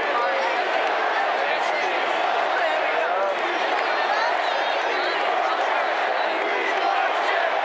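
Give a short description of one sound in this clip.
A large stadium crowd roars and cheers steadily all around.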